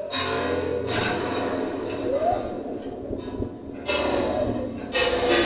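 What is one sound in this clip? Electronic synthesizer music plays with pulsing, pitched tones.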